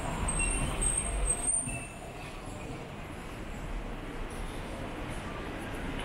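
Outdoor city street noise murmurs steadily.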